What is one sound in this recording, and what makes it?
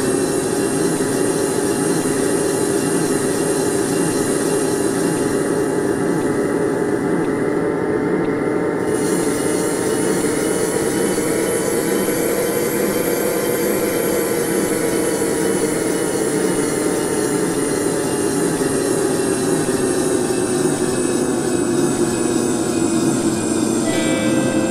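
A train's electric motor hums and whines, rising and then falling in pitch as it speeds up and slows down.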